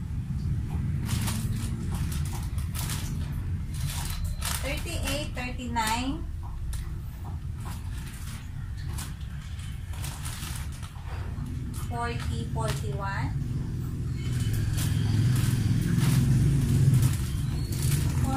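Plastic wrapping crinkles and rustles in a woman's hands.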